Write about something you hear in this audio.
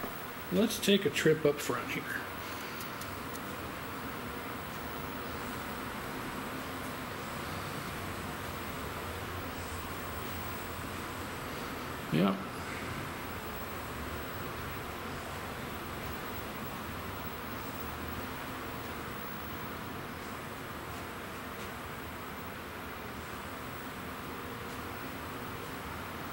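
Arcade games hum and beep steadily in a room.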